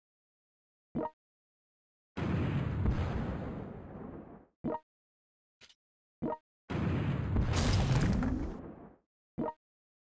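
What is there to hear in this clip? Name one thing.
Short game clicks sound now and then.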